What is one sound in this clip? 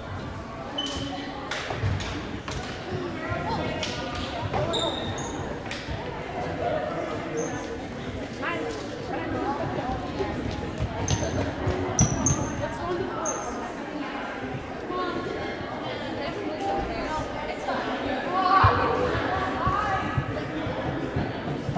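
Players' voices and chatter echo through a large gym.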